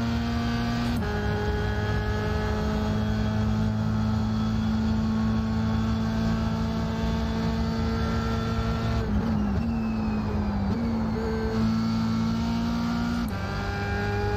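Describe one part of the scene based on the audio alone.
A racing car engine changes pitch as gears shift up and down.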